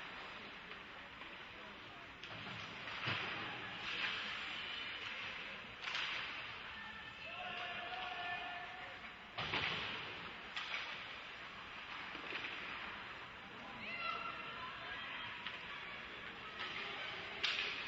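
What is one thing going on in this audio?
Skates scrape and carve across the ice.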